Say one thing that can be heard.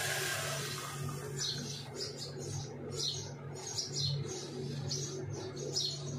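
Liquid trickles and splashes through a metal strainer into a glass cup.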